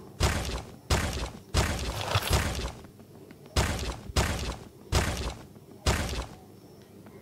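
Short game reward chimes ring out in quick succession.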